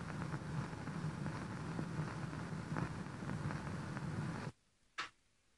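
A gramophone plays a scratchy old dance band record.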